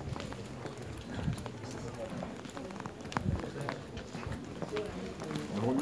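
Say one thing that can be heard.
Adults chatter in the background of an echoing indoor space.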